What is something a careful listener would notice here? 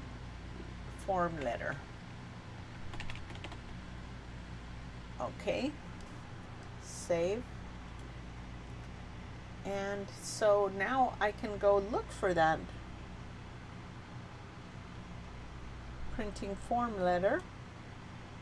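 A woman speaks calmly into a close microphone, in short phrases with pauses.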